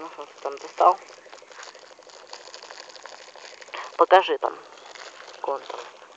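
A plastic bag crinkles as it is handled up close.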